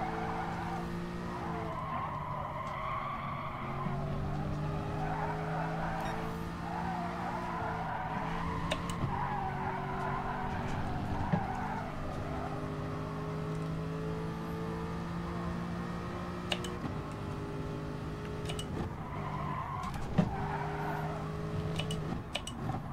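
A racing car engine roars and shifts pitch as it speeds up and slows through gears.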